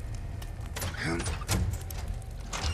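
A metal gate rattles and creaks.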